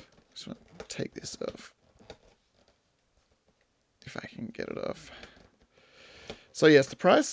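A cardboard box rustles and creaks as hands turn it.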